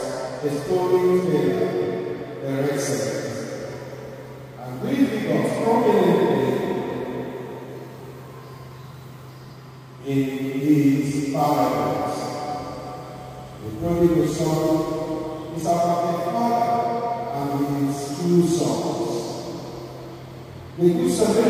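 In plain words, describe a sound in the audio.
A man preaches with feeling into a microphone, his voice echoing in a large hall.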